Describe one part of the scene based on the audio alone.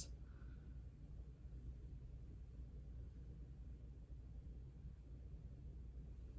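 Fingertips softly rub against skin.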